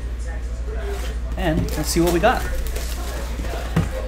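Plastic wrapping crinkles as it is torn off.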